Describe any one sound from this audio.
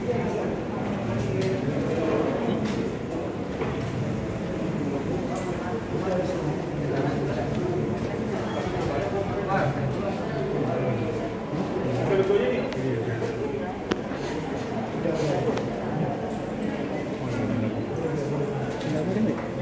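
Several women talk over each other in a room with a slight echo.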